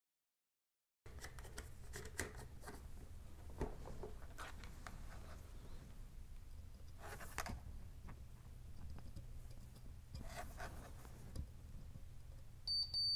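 Small metal tools click and tap against a circuit board.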